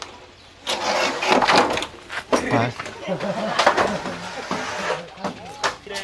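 Corrugated metal roofing sheets scrape and clatter as they are pulled off.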